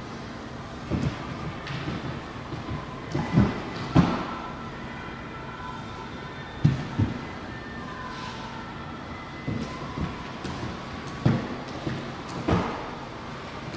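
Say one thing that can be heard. Hands and feet thump on a wooden floor.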